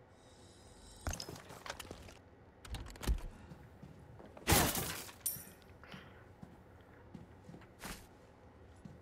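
Footsteps tread across a floor.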